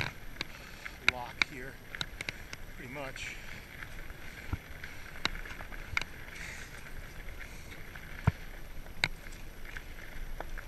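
Bicycle tyres roll over a bumpy dirt path.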